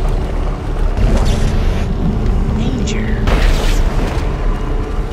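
A weapon fires in short bursts.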